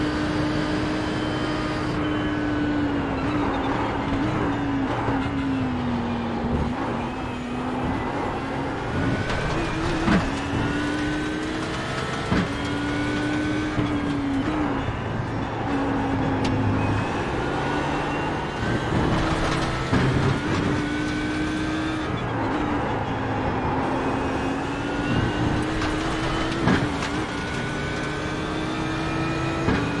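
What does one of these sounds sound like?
Other race car engines drone close ahead.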